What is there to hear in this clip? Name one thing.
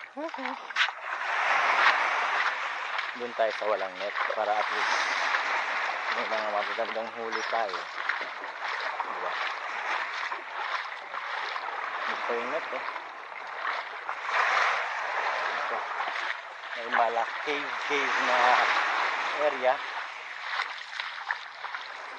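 Small waves wash and splash against a rocky shore.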